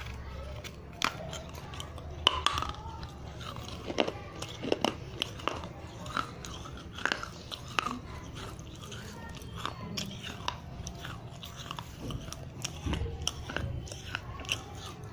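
Brittle clay crunches loudly between teeth close up.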